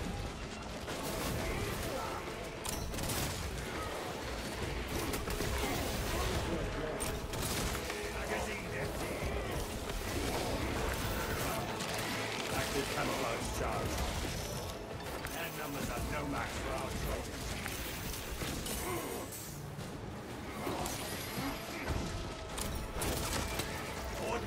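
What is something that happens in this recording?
Gunfire and explosions blast in a fierce game battle.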